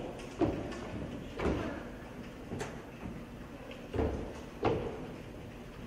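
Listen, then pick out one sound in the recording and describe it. Folders thump and pages rustle close by.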